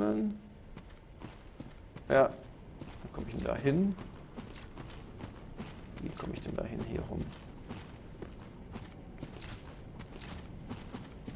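Armoured footsteps crunch quickly over the ground.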